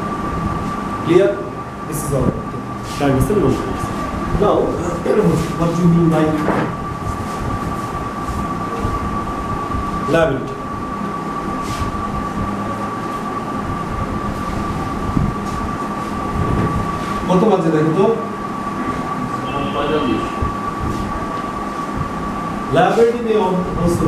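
A man speaks calmly, as if explaining to a class.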